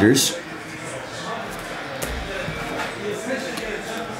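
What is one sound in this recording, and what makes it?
A plastic card sleeve rustles in a man's hands.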